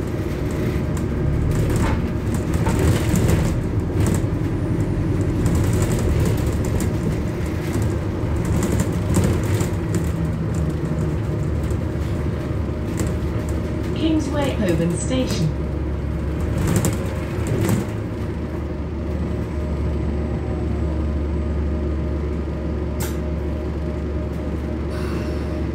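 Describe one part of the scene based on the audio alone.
A bus engine hums and drones, heard from inside the moving bus.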